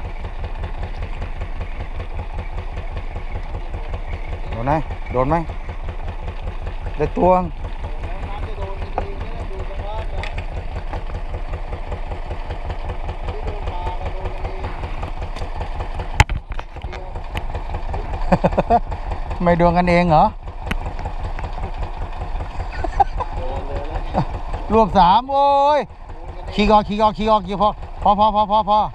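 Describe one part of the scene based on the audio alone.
A boat engine chugs steadily at a low, even beat.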